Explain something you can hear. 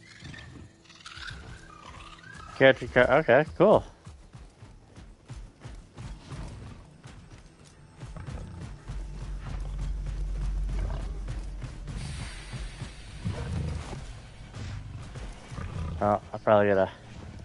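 A creature's feet thud quickly and steadily as it runs.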